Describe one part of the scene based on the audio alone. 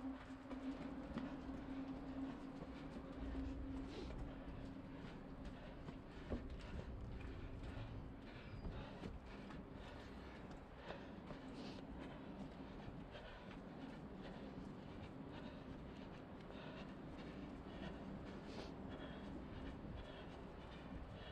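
Footsteps run quickly up stone stairs and along pavement.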